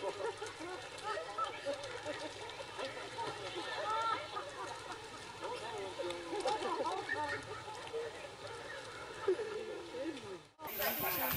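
A crowd of people chatters and exclaims nearby.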